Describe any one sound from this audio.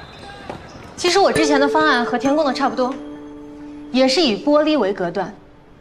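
A young woman speaks calmly to a room.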